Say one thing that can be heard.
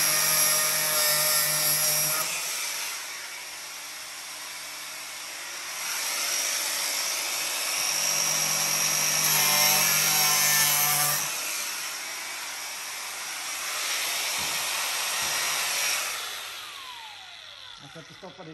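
An angle grinder whines loudly as it grinds metal, then winds down.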